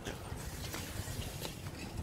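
A bicycle rolls quietly along a paved path.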